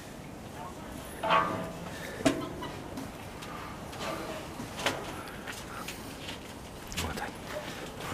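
A bear pushes at a metal cage, rattling the wire mesh.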